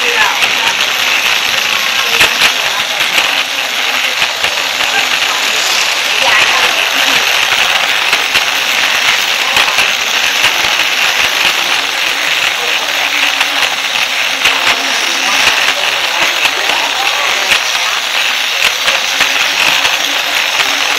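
A small toy train motor whirs steadily close by.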